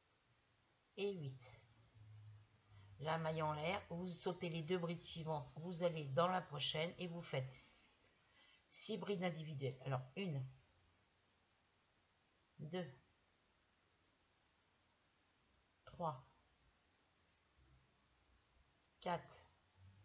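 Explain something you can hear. A woman speaks calmly close to the microphone.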